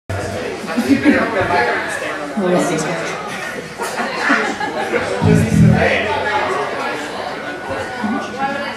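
A live band plays loudly.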